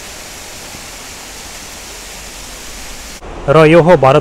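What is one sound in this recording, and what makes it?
A waterfall splashes and rushes steadily.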